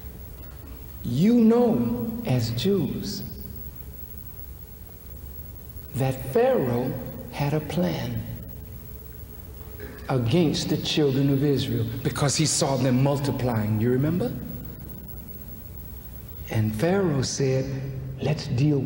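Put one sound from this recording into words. A man speaks forcefully into a microphone in a large echoing hall, with long pauses between phrases.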